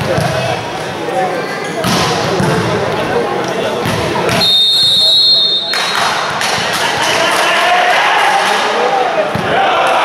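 Players shout and chatter in a large echoing hall.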